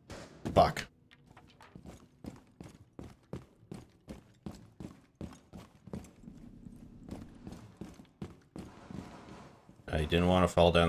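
Footsteps thud quickly across a hard floor.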